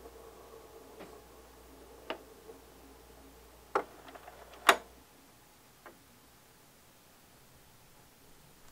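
A record crackles and pops softly as it spins on a turntable.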